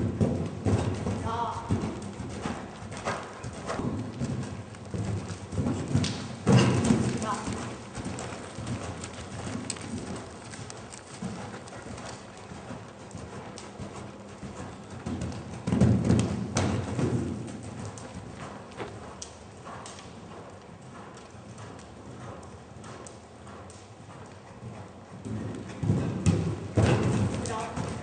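Horse hooves thud on soft sand in a large echoing hall.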